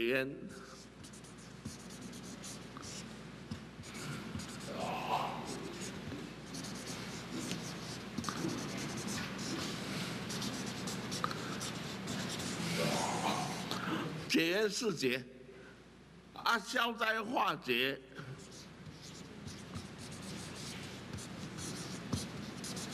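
A felt marker scratches and squeaks across paper.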